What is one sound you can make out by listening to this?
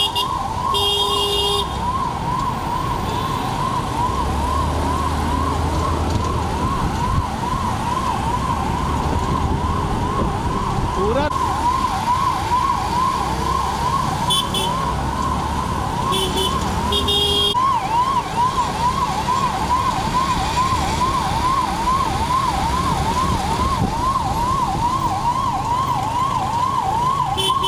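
An engine rumbles as vehicles drive along a road.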